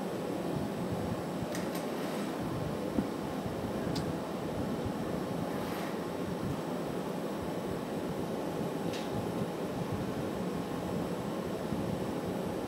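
A glass furnace roars steadily.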